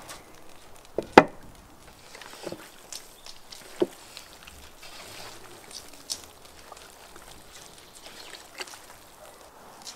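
Hands squelch and squish raw meat in a metal pot.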